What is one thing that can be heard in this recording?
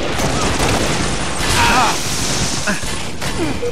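An energy sword swings and strikes with a sharp electric hiss.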